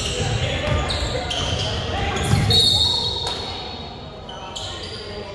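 A small crowd murmurs and calls out in a large echoing gym.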